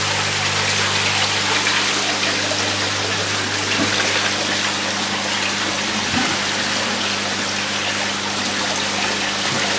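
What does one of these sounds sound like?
Water splashes and bubbles from a fountain outlet into a tank.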